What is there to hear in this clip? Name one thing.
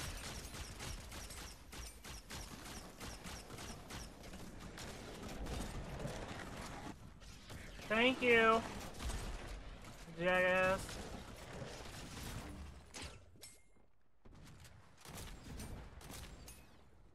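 Rapid gunshots crack in quick bursts.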